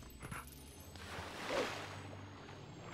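Water splashes briefly.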